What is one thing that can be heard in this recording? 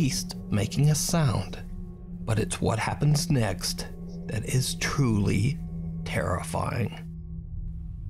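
A young man speaks calmly and close into a microphone.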